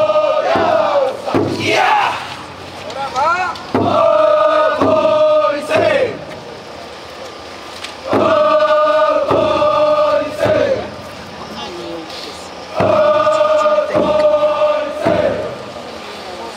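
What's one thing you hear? A group of men chant together loudly in bursts, close by.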